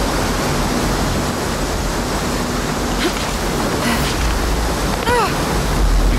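A waterfall roars and rushes nearby.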